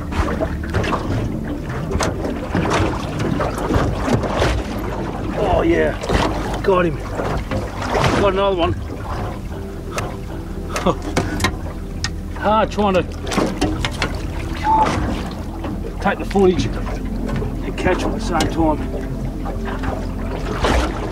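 Water gurgles and rushes, muffled as if heard underwater.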